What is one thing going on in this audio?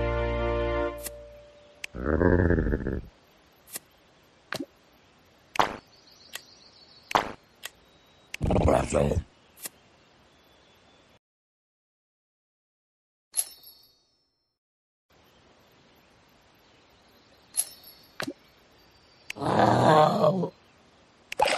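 Short game clicks and chimes sound now and then.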